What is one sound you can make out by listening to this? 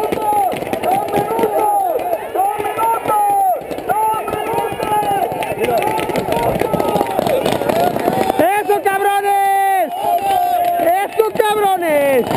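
A crowd of young men yells and shouts in the distance.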